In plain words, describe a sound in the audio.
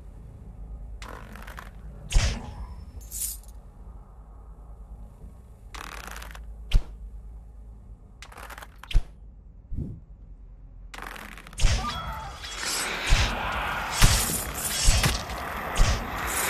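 A bowstring twangs as arrows are loosed in quick shots.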